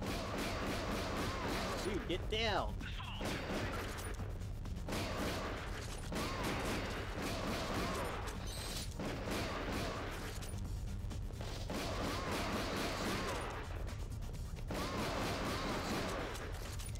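Rapid gunfire crackles in a game.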